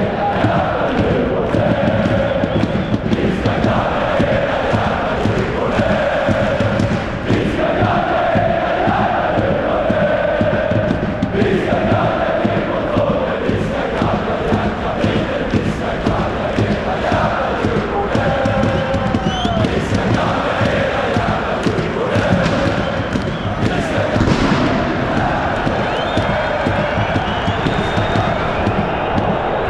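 A large crowd of fans sings and chants loudly in a big echoing stadium.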